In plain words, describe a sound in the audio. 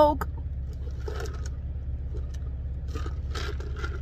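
A woman sips a drink through a straw.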